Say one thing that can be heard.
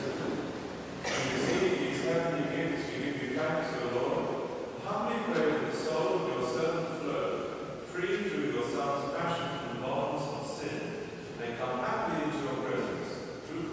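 A congregation of men and women sings together in a large echoing hall.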